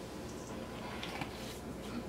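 Spice shakes from a jar into a metal bowl.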